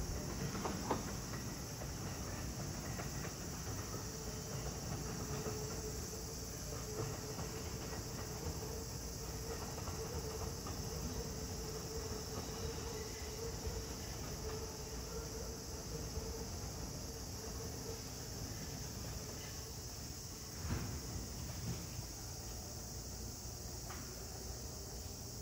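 A train rumbles along the tracks and slowly fades into the distance.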